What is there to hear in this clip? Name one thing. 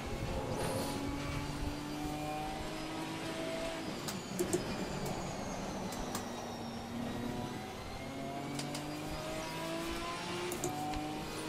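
A racing car engine drones steadily, its pitch rising and falling with gear changes.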